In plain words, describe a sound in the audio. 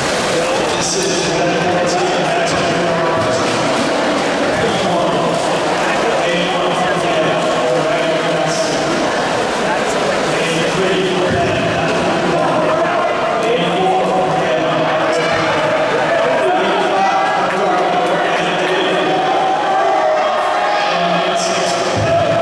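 A crowd of spectators cheers and shouts loudly in a large echoing hall.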